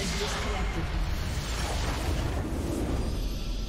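A triumphant fanfare swells and rings out.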